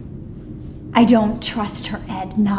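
A woman says something sharply and firmly.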